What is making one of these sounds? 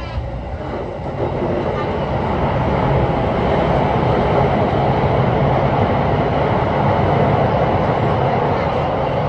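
A train's roar swells loudly as it enters an echoing tunnel.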